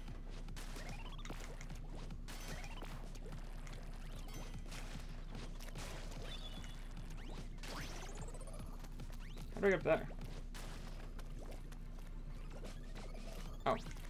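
Video game sound effects splash and whoosh throughout.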